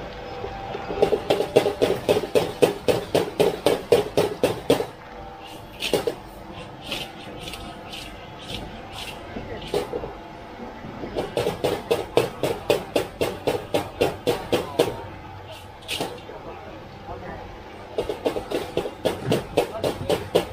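A metal spatula scrapes and clangs rapidly against a wok.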